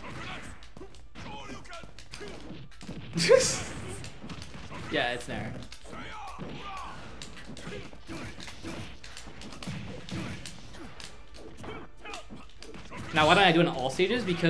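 Video game fighting sounds hit and whoosh.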